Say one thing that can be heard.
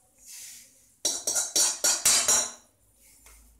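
Seeds rattle as they pour onto a metal plate.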